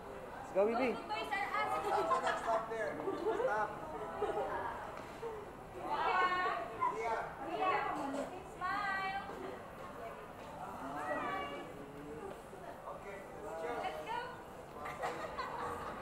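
Young girls chatter in high voices close by.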